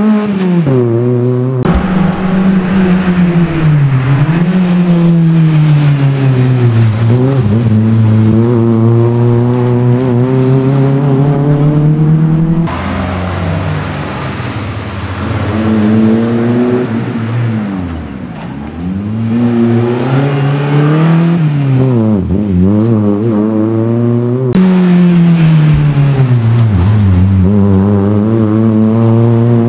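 A small car engine revs hard, rising and falling as the car races through tight turns.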